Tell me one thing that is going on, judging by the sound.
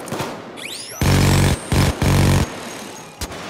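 Heavy gunfire rattles in loud bursts.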